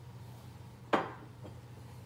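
A glass knocks down on a wooden table.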